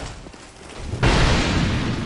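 A heavy blade strikes armour with a loud crash.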